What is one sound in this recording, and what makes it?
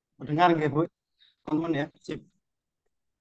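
A man speaks calmly through a headset microphone on an online call.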